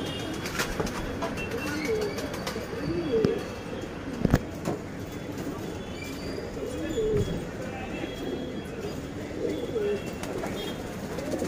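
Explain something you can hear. Pigeons coo in low, rolling calls close by.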